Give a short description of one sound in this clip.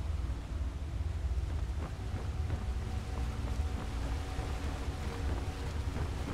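A fire crackles and flickers in a brazier.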